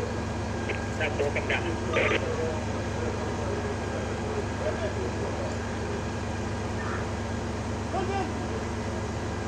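A man shouts briefly at a distance.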